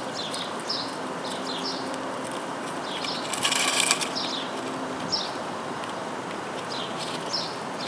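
A chipmunk nibbles and crunches corn kernels up close.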